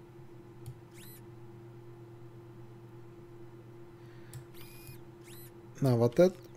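Short electronic menu chimes sound softly.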